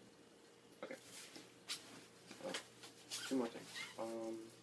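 A zipper on a bag is pulled open.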